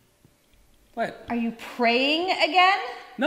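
A woman talks with animation, close by.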